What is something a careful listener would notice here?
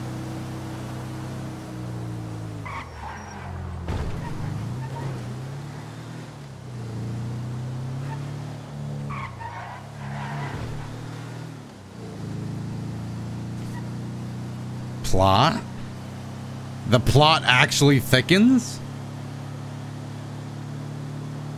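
A van engine hums steadily, rising and falling in pitch as it drives.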